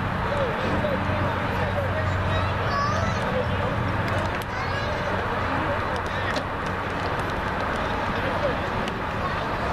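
A crowd of spectators shouts and cheers from a distance outdoors.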